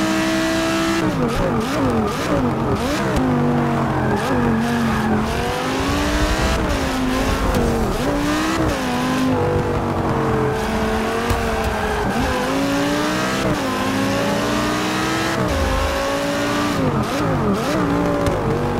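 Other racing car engines snarl close by.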